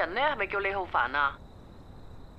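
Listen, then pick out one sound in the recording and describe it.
A young man speaks anxiously over a phone.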